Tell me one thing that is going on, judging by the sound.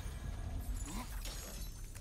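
A flaming spear whooshes through the air.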